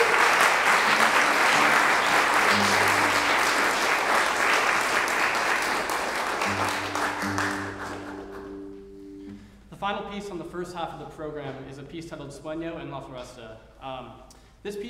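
A classical guitar plays a gentle melody in an echoing hall.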